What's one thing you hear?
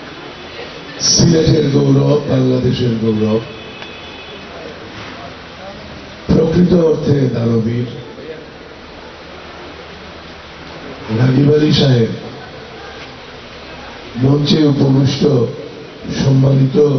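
An elderly man speaks slowly into a microphone, heard through a loudspeaker, with pauses between phrases.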